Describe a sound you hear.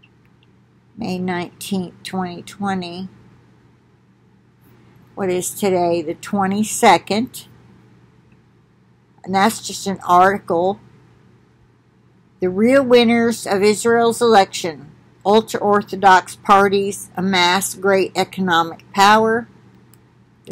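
An elderly woman speaks calmly and close by, with pauses between phrases.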